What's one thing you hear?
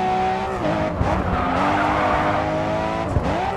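Tyres screech as a car slides through a bend.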